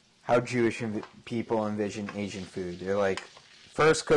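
A wooden spoon scrapes and stirs food in a pan.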